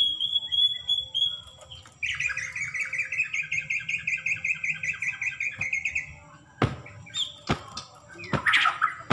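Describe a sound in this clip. A bird sings loud, rapid, whistling phrases close by.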